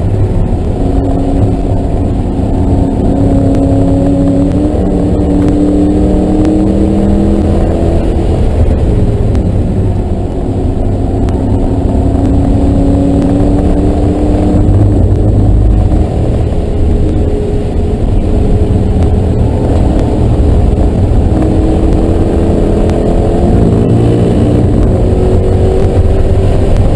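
A car engine roars loudly from inside the cabin, its pitch rising and falling with gear changes.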